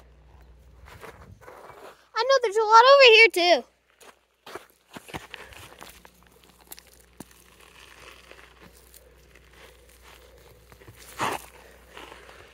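Footsteps crunch on sandy, gravelly ground.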